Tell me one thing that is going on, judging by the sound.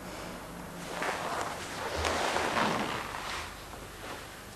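Clothing rustles as a man gets up from a soft seat.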